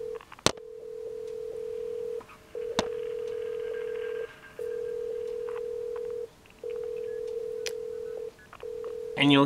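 A steady telephone tone sounds from a handset earpiece close by, broken by short pauses.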